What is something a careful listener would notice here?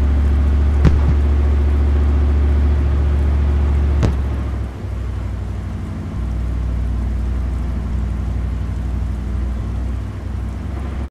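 A tank's engine rumbles deeply as the tank drives.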